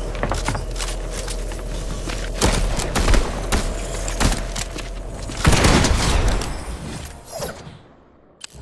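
Gunshots fire rapidly.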